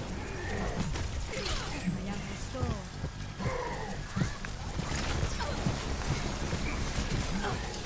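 A video game's energy beam hums and crackles steadily.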